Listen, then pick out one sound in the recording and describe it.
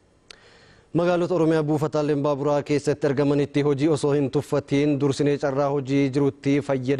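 A man speaks clearly into a microphone, reading out calmly.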